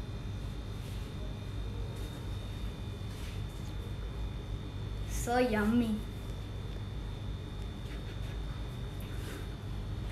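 A metal spoon scrapes chocolate spread across soft bread.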